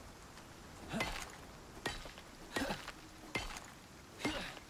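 A pickaxe strikes rock with sharp clinks.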